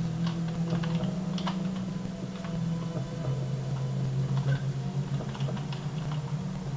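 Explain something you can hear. Keys clatter on a keyboard as fingers press them.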